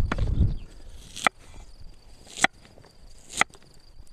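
A knife taps sharply on a wooden board while cutting food.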